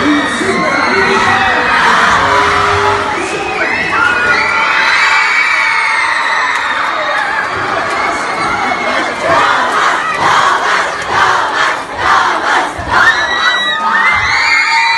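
A large crowd screams and cheers excitedly in an echoing hall.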